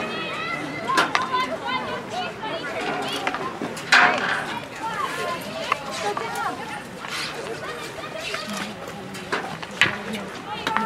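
Hockey sticks crack against a ball.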